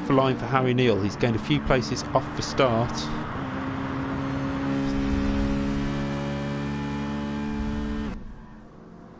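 A racing car engine revs hard, climbing through quick gear changes, then holds a steady high whine.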